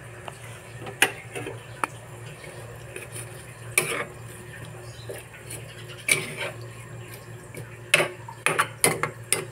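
A plastic spatula stirs and scrapes vegetables in a wok.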